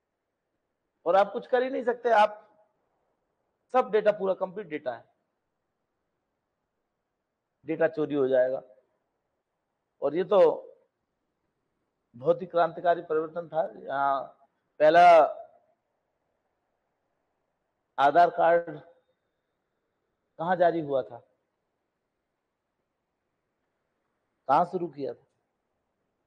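A middle-aged man lectures calmly into a microphone, in short phrases with pauses.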